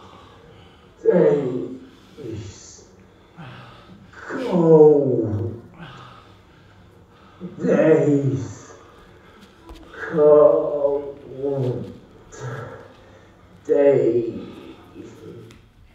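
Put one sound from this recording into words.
A young man calls out in long, drawn-out phrases, echoing in a large room.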